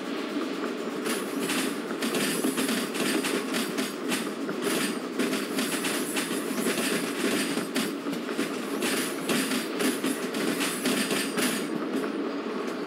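Train wheels clatter rapidly over rail joints.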